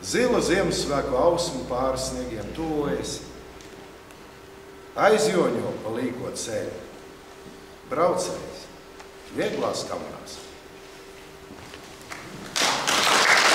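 An elderly man speaks with animation, reading out in a room with a slight echo.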